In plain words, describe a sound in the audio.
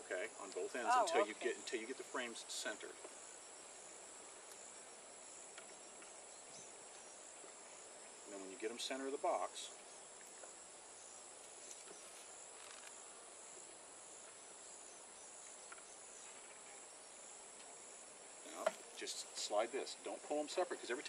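A man speaks calmly outdoors, close by.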